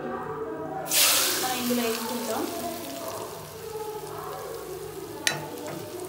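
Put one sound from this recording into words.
Hot oil sizzles loudly as it is poured into a bowl, then fades.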